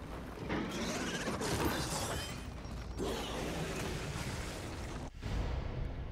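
Gunshots crack from a pistol.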